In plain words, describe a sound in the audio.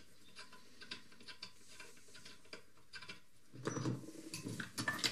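Small metal parts click and clink against a vise.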